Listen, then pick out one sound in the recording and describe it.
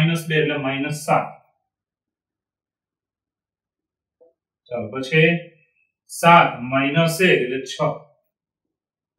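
A middle-aged man speaks calmly and clearly nearby, explaining.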